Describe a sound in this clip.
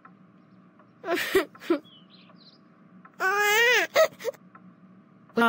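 A young boy whines and sobs close by.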